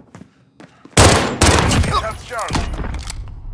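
Pistol shots fire in a loud, rapid burst.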